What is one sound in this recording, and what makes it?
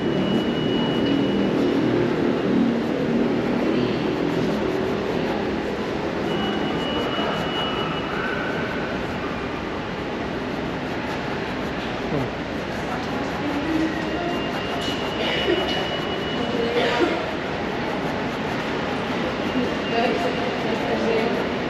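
Wheels roll steadily over a smooth hard floor in a long echoing passage.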